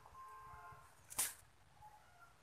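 A caged bird flutters its wings briefly.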